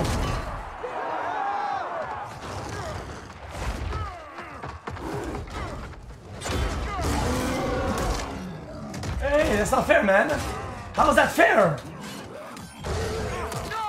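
Heavy blows thud against armour.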